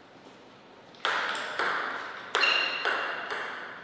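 A ping-pong ball bounces on a table with sharp clicks.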